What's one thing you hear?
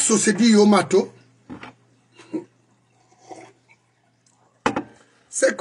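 An older man sips a drink.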